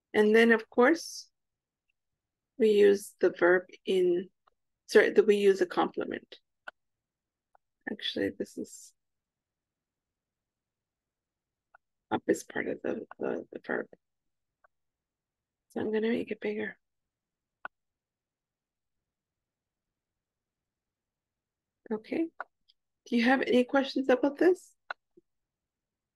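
A woman speaks calmly, heard through an online call, with pauses.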